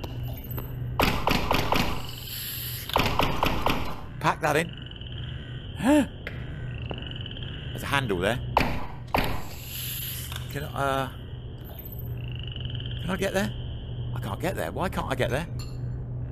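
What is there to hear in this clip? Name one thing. A toy-like gun fires electric zaps in short bursts.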